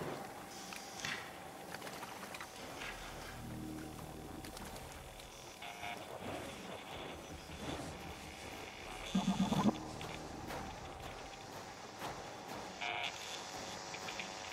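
Footsteps crunch softly on damp ground.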